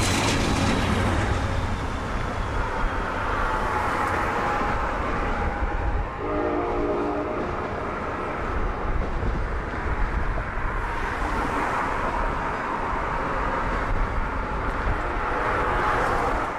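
A passenger train rumbles and clatters past on the tracks close by.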